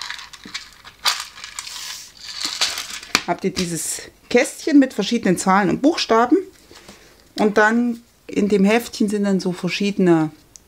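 Paper and plastic wrapping rustle as they are handled.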